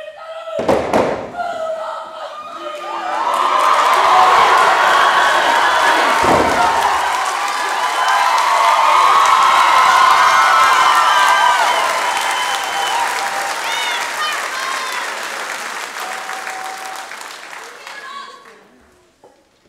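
A group of young men and women chants and shouts loudly in unison.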